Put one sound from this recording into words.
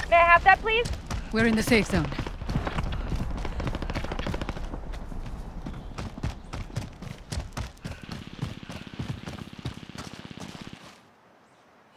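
Footsteps crunch steadily on dirt.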